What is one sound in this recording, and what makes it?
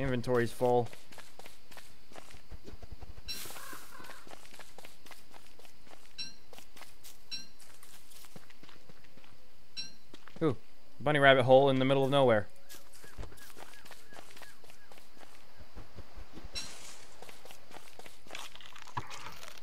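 Soft footsteps patter on the ground.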